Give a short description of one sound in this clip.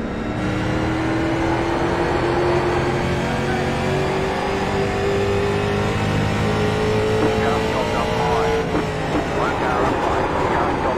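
A race car engine roars steadily, its pitch slowly rising as it shifts through gears.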